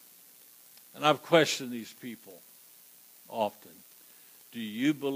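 An elderly man preaches emphatically through a headset microphone, with pauses between phrases.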